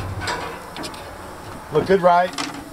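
Meat sizzles on a hot grill.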